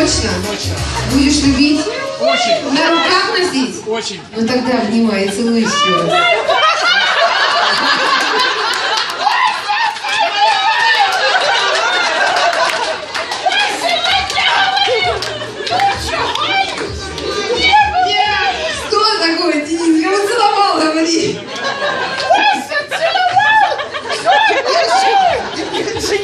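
A crowd of men and women talk, laugh and cheer loudly nearby.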